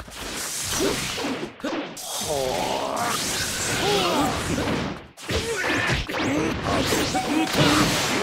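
Blades swish and clang in a fight.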